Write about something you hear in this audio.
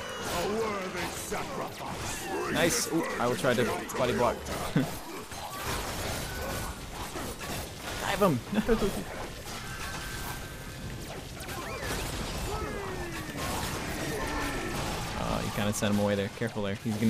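Game weapons fire and blast in rapid bursts.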